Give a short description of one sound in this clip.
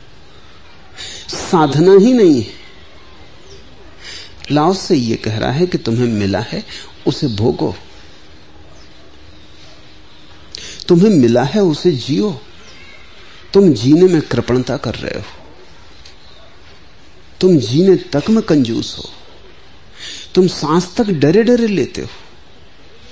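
An older man speaks slowly and calmly into a microphone, with long pauses between phrases.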